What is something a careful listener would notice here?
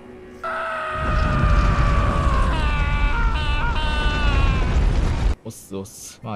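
A heavy stone door grinds and rumbles open.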